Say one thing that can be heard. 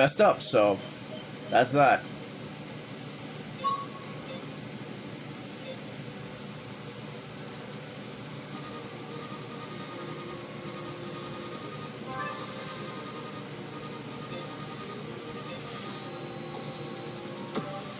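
Soft electronic game music plays steadily.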